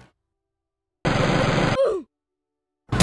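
A gun fires a shot.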